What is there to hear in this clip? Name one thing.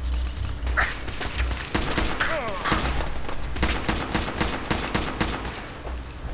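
Laser guns fire in rapid shots.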